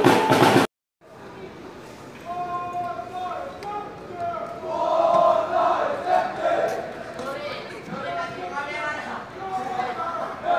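Young men shout to each other across an open football pitch in the distance.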